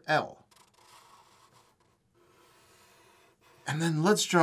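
Felt-tip markers scratch and squeak softly across paper.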